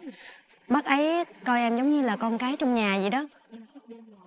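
A young woman speaks brightly and warmly.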